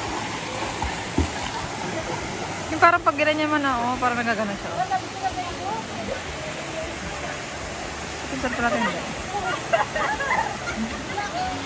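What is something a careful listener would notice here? Swimmers splash in water.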